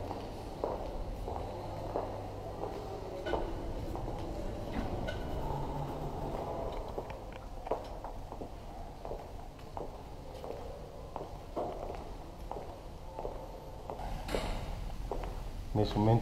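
Footsteps walk across a hard floor in a large echoing hall.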